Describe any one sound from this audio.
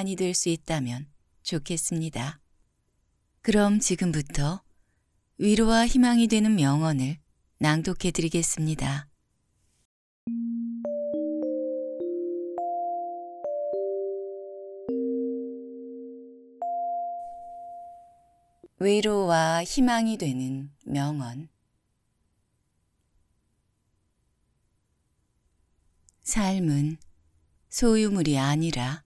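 A young woman speaks calmly and softly into a close microphone.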